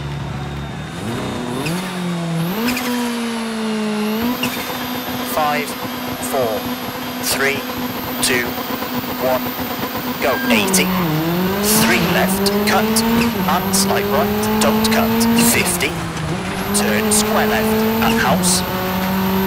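A rally car engine revs hard and climbs in pitch, dropping at each gear change.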